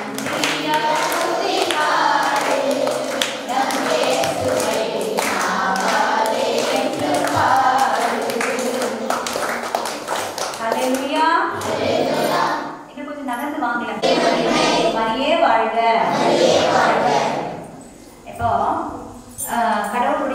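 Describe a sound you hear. A woman sings into a microphone over a loudspeaker in an echoing room.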